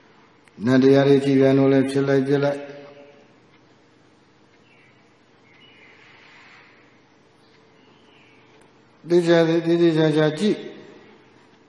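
A man chants in a steady, drawn-out voice into a microphone, with a slight echo.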